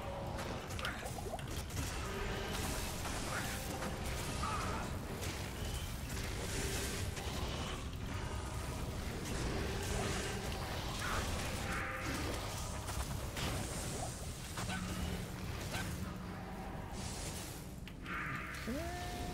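Spells crackle and burst in quick succession during a fight.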